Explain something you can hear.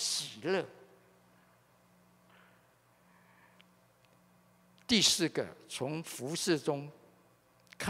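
An elderly man speaks calmly into a microphone, heard through loudspeakers.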